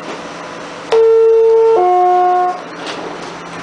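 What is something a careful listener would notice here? A two-tone door chime sounds.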